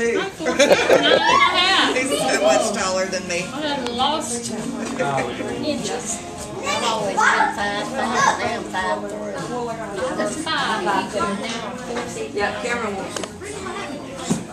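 Several adults talk and chat nearby, voices overlapping.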